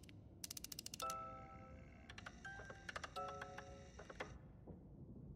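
A music box plays a short tinkling tune.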